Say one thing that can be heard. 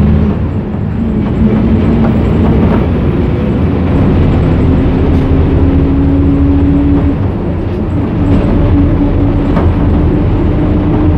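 A train's motor hums with a steady whine that shifts in pitch.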